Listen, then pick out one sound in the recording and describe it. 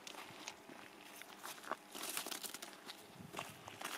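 Small footsteps crunch on gravel.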